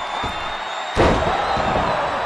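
A heavy body slams down hard onto a wrestling ring.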